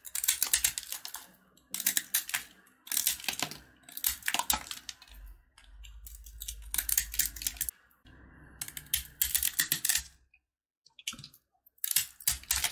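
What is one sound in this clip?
A blade scrapes and crunches through hard candy in short bursts, close up.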